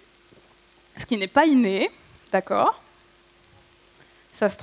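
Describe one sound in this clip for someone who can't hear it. A woman speaks with animation through a microphone.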